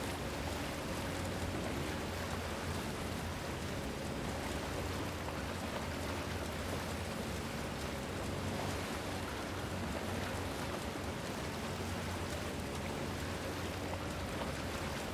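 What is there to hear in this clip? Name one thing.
Water laps gently against a small boat as it glides along.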